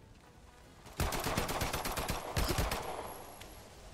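A submachine gun fires rapid bursts of loud shots.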